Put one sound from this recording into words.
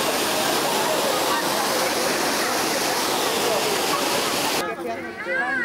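A fountain's water splashes and roars loudly.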